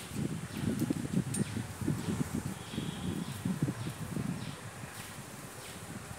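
Leaves rustle close by.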